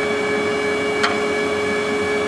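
A metal tow hanger clanks once against the lift.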